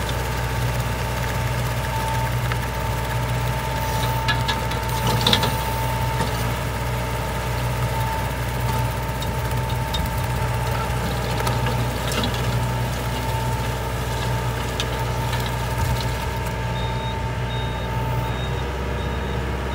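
A rotary levee-forming implement churns through wet soil.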